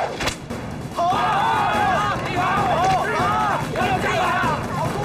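A crowd of men cheers and shouts loudly.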